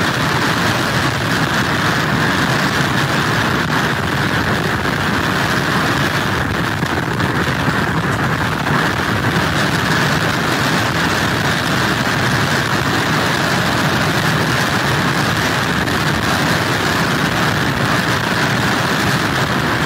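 Strong wind blows steadily outdoors.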